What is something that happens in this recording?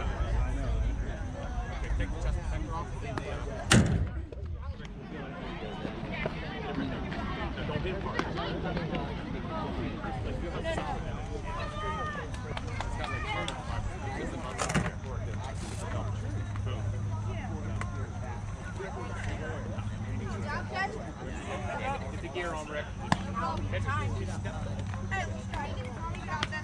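People talk and call out across an open outdoor field.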